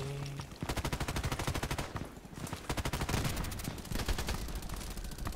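A machine gun fires rapid bursts in a video game.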